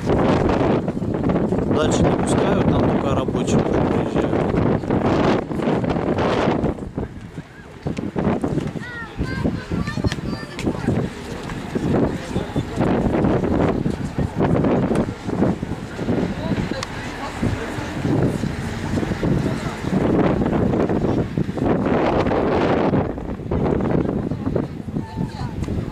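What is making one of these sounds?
Wind buffets the microphone.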